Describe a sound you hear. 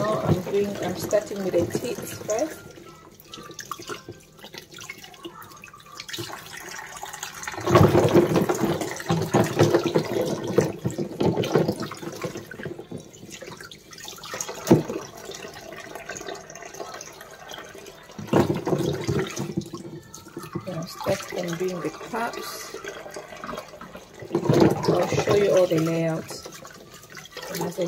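Water runs from a tap into a tub of water.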